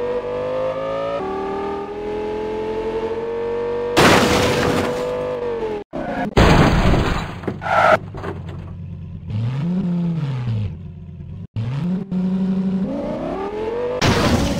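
A sports car engine revs high, drops and rises again.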